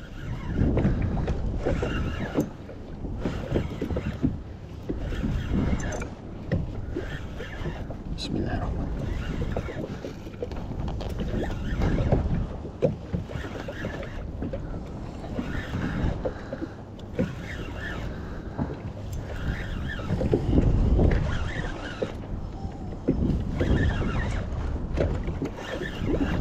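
Wind blows hard over open water.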